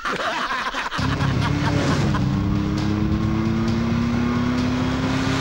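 A car engine hums steadily as a car drives by.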